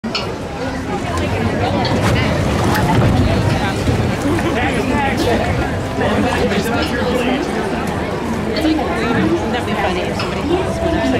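Water splashes and churns along a channel.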